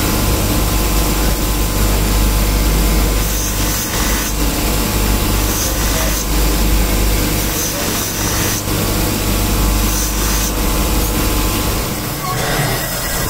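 A polishing wheel hums and whirs steadily.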